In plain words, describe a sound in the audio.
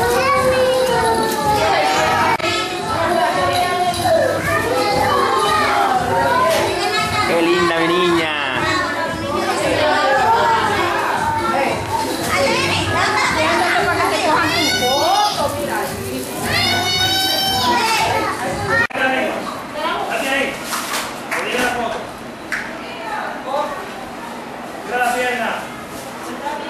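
Young children's voices chatter and call out close by.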